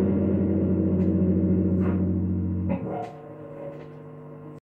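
Strings on an electric bass guitar squeak and click softly.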